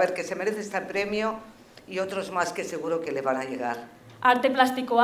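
A woman speaks clearly over a loudspeaker in a large hall.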